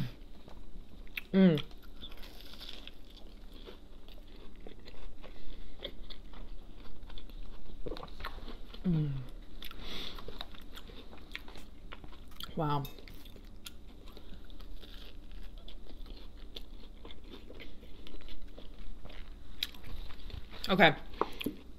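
A young woman chews crunchy food close to a microphone.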